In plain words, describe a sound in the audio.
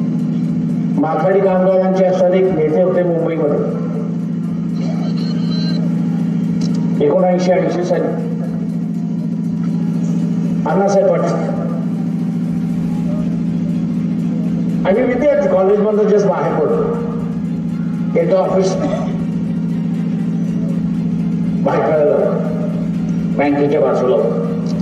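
An elderly man speaks forcefully into a microphone through a loudspeaker, in bursts with pauses.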